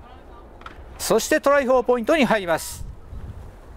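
A group of young men shout loudly together outdoors.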